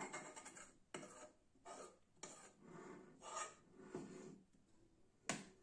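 A metal spoon scrapes food out of a pan onto a plate.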